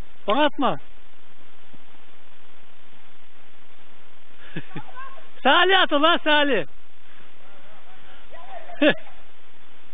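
Boys shout and yell loudly outdoors.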